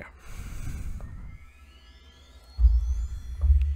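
A bright magical chime rises and shimmers.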